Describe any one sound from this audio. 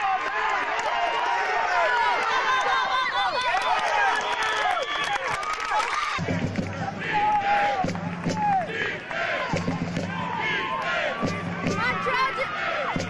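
Players shout and call out across an open field outdoors.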